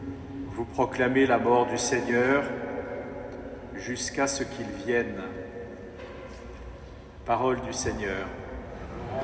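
An elderly man speaks slowly into a microphone in a large echoing hall.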